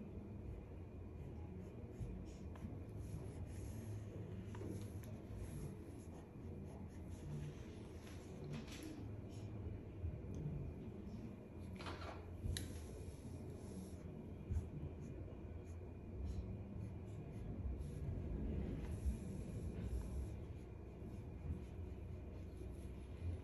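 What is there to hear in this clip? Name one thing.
A hair straightener clicks softly as it clamps and slides along hair.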